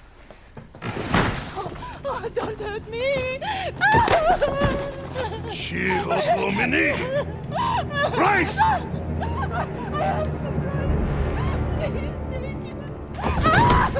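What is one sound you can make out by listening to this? A woman wails and sobs loudly.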